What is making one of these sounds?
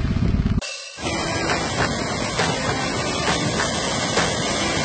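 Waves break and wash in the sea.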